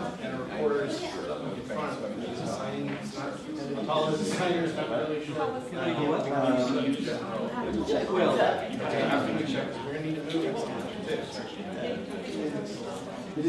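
Several men and women talk at once in a room with a light echo.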